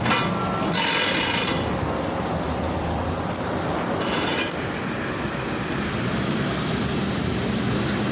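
A bus engine idles close by at a stop.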